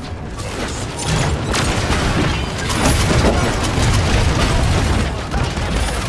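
Energy blasts crackle and explode loudly.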